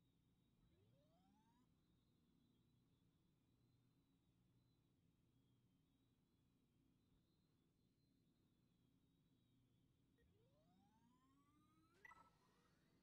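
A starfighter's engines hum steadily.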